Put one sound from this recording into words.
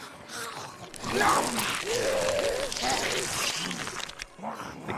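Zombies tear and chew wetly at flesh.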